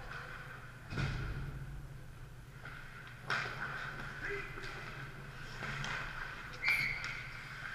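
Hockey sticks clack against a puck on the ice.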